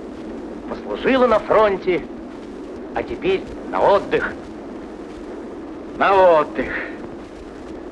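Men shout and call out with animation.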